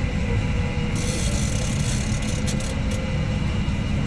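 A fishing reel's drag buzzes as a fish pulls line out.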